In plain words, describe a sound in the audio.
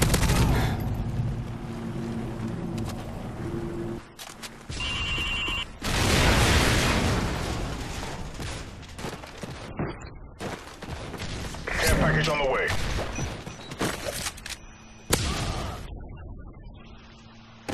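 A rifle fires loud gunshots.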